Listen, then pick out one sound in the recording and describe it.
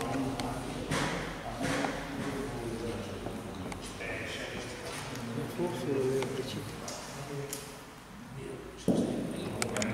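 Men talk calmly nearby in a hall with a slight echo.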